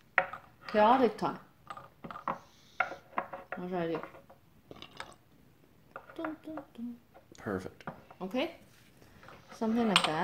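Small porcelain cups clink softly against each other.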